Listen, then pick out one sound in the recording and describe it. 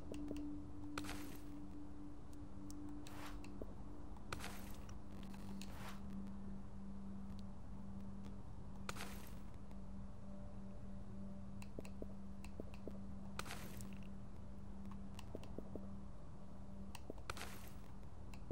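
Soft whooshing menu sounds play now and then as a list scrolls.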